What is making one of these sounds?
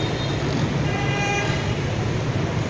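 A horn beeps briefly from the traffic.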